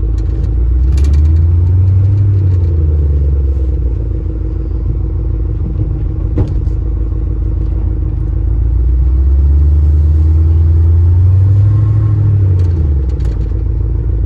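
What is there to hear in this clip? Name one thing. A truck engine revs up and then settles back twice.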